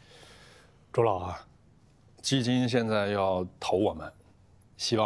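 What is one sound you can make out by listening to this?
A middle-aged man speaks calmly.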